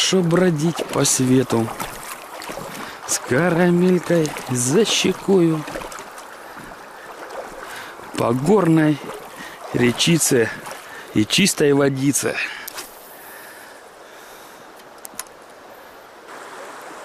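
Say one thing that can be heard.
Shallow river water ripples and flows gently outdoors.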